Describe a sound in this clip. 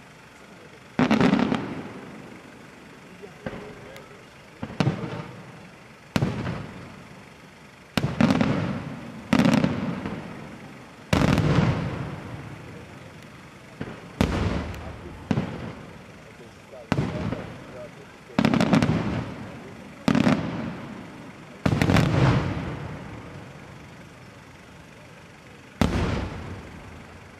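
Aerial firework shells burst with loud booming bangs that echo outdoors.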